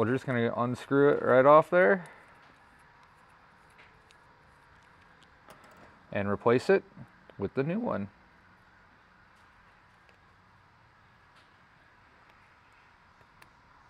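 Small metal parts click softly as they are fitted together by hand.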